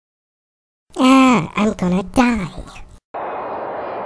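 A young woman speaks with surprise.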